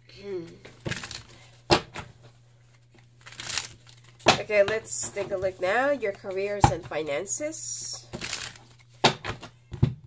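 Playing cards riffle and shuffle in hands.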